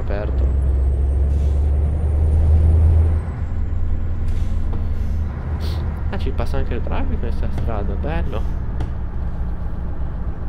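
A truck engine drones low and steady.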